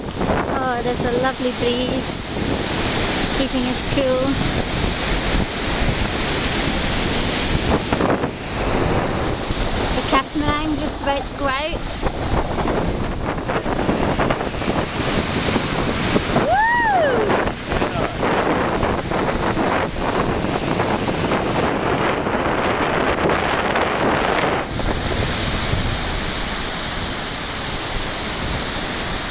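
Wind blows loudly across the beach.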